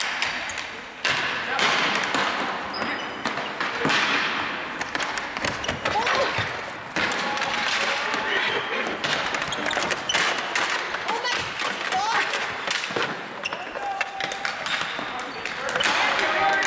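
Sticks clack and scrape on a hard floor, echoing in a large hall.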